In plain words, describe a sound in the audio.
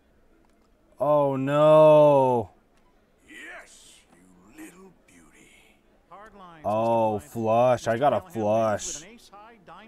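A man exclaims with animation close to a microphone.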